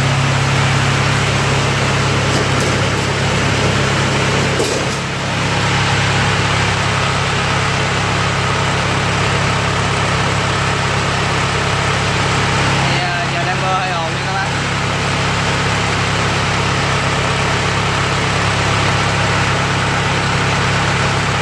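A diesel engine runs with a loud, steady rattling hum.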